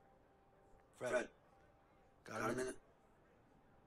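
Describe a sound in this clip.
A man calls out.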